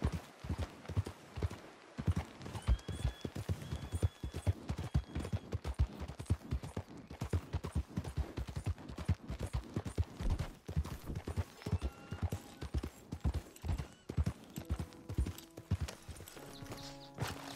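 A horse's hooves thud rhythmically on a dirt trail at a gallop.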